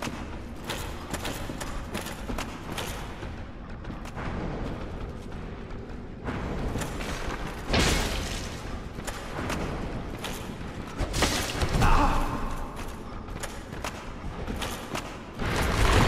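Armoured footsteps clank and scrape on rocky ground.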